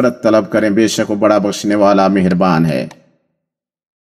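A man chants a sermon through a microphone in a large echoing hall.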